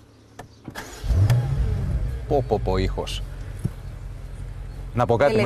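A car engine rumbles and revs up.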